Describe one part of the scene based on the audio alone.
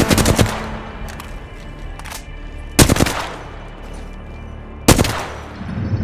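Gunshots ring out loudly, each followed by a short echo.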